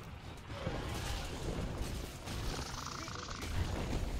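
Weapons clash and strike a large beast.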